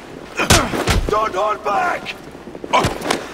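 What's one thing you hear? A man shouts an order.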